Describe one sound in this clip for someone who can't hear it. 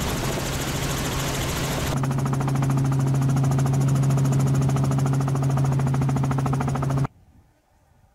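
A helicopter engine and rotor drone loudly and steadily from inside the cabin.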